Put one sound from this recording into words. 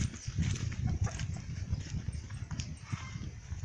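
Footsteps scuff on dry dirt outdoors.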